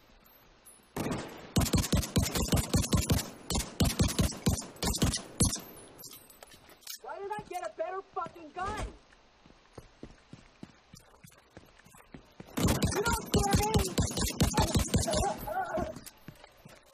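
Rapid bursts of rifle fire ring out close by.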